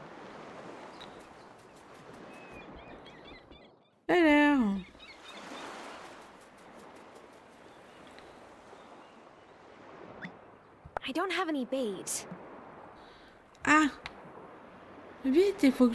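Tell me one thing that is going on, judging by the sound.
Gentle waves wash onto a sandy shore.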